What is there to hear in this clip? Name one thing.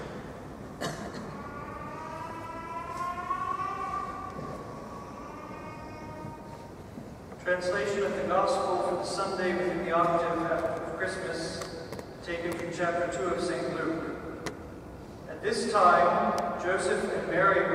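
A man sings a chant through a microphone in a large echoing hall.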